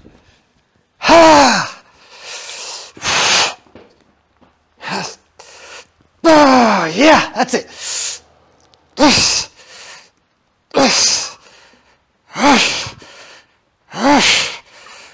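A man grunts and exhales loudly while straining.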